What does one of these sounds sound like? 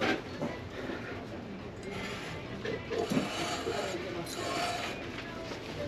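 A ceramic mug clinks lightly against a glass shelf.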